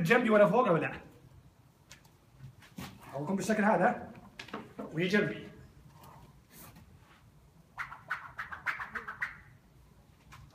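A man talks calmly close by, in short bursts.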